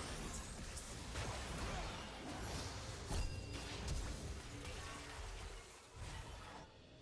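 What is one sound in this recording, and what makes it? Magic spells whoosh and crash in a fast battle.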